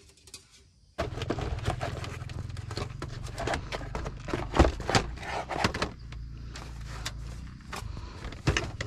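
Objects knock against a wooden box.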